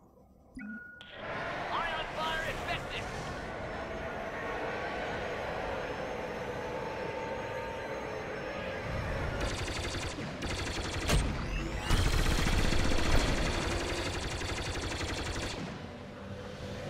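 A spacecraft engine roars loudly as it flies.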